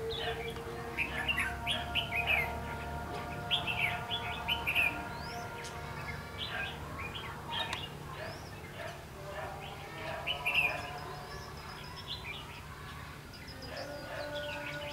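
Small birds chirp and twitter in quick bursts nearby.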